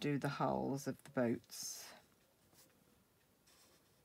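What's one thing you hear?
A marker tip scratches softly on card.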